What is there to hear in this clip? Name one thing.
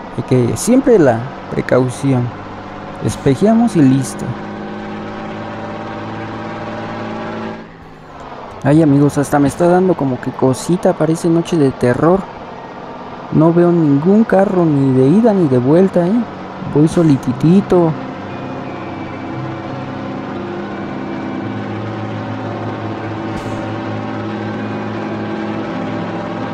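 A truck engine hums steadily and rises in pitch as it speeds up.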